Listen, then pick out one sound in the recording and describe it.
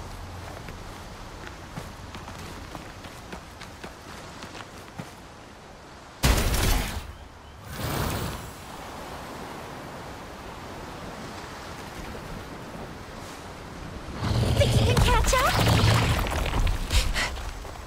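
A game character's footsteps patter over rock.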